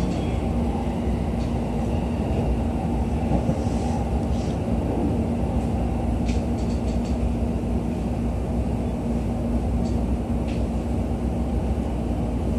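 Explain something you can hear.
A train rumbles steadily along the tracks, heard from inside the carriage.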